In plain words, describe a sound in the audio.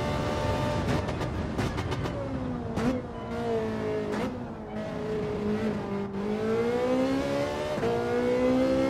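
A racing car engine drops in pitch as the car slows, then revs up again.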